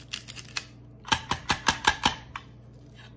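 A plastic grinder cup is tapped with quick knocks.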